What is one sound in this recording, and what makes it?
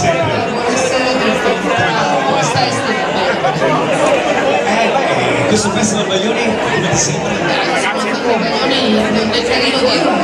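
A man asks questions into a microphone.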